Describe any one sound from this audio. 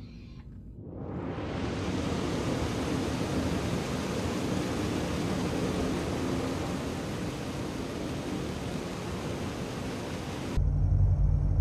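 Water sloshes steadily around wading footsteps.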